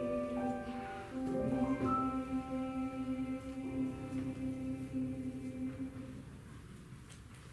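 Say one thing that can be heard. A choir sings a held chord in a hall that slowly fades out.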